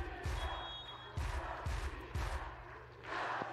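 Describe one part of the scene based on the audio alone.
A large crowd bangs noisemakers in a steady rhythm in a big echoing arena.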